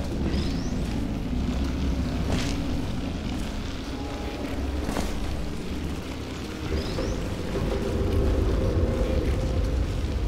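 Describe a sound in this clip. An electric crackle hums steadily as an object is held.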